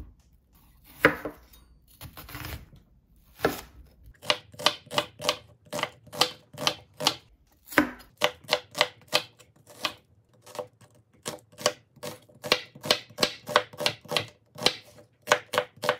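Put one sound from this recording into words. A knife chops quickly through an onion onto a wooden board.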